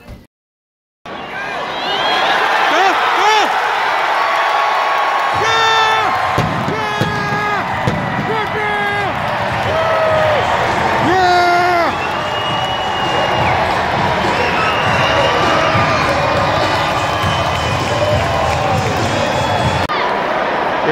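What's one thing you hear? A large stadium crowd roars and cheers outdoors.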